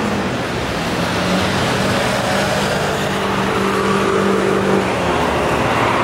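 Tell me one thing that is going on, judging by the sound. A motorbike engine passes by.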